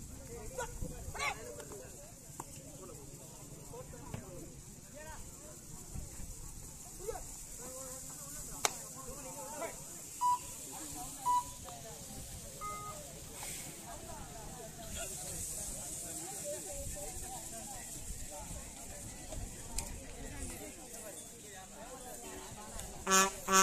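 A crowd of onlookers chatters and calls out outdoors.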